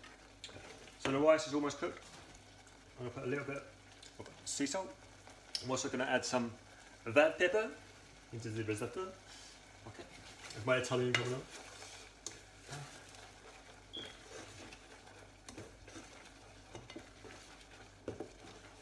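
A spoon stirs in a metal pan.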